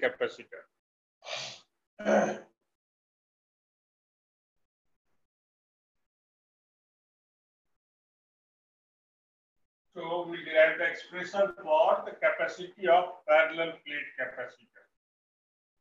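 A man talks calmly, as if teaching, close by.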